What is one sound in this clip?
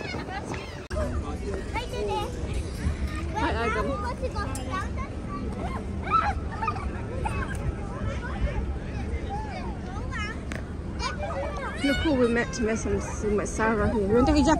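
Children shout and laugh at play outdoors.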